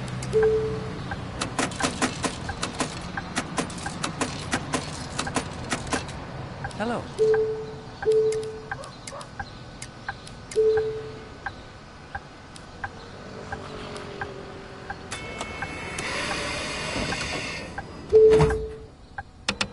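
An electronic ticket machine beeps.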